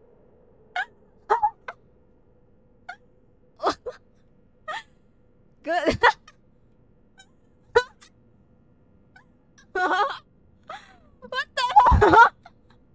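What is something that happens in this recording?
A young woman talks and exclaims with animation in short bursts, close to a microphone.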